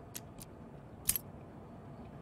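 A lock snaps open with a sharp clack.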